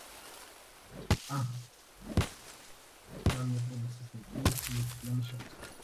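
A stone blade chops at leafy plants.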